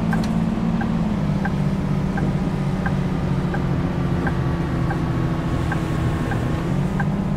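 A bus engine hums steadily as the bus drives.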